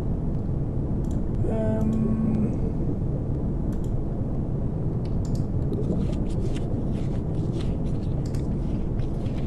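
Soft interface clicks sound as menu items are selected.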